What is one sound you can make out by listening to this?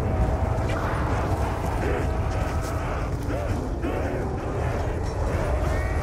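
A zombie groans and snarls nearby.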